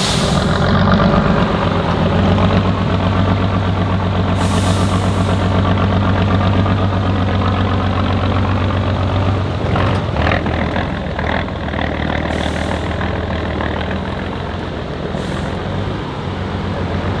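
A heavy truck engine roars and labours as it climbs a steep slope.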